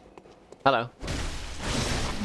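A blade slashes through flesh.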